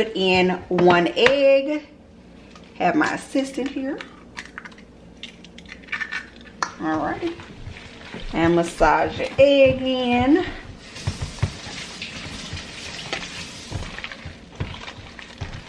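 Hands squish and knead raw ground meat in a metal bowl.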